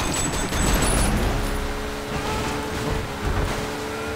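Cars crash together with a loud metallic bang.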